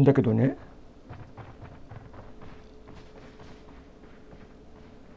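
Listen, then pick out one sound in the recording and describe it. Footsteps thud softly on a wooden floor.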